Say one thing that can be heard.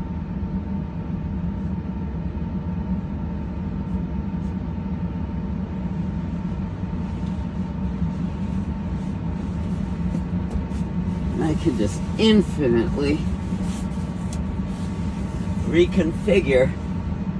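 Clothes rustle against seats.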